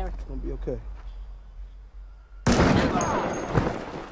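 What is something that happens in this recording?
A gunshot bangs.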